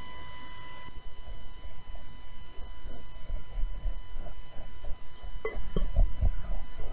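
A whisk scrapes and taps against a glass bowl in quick strokes.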